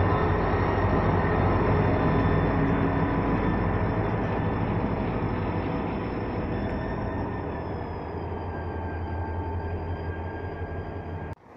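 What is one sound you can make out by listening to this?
Diesel locomotive engines rumble and hum loudly close by.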